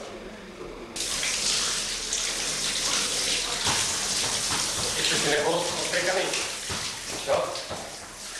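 Water sprays from a hand-held shower and splashes onto a man's body in a tiled room.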